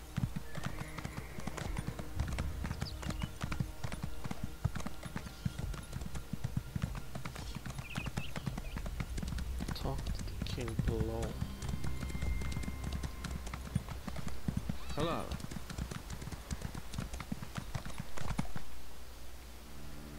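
A horse gallops with quick, steady hoofbeats.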